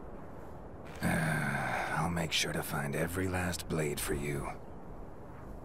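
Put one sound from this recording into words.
A man speaks calmly in a low voice, close by.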